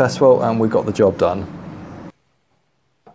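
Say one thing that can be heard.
An elderly man speaks calmly nearby.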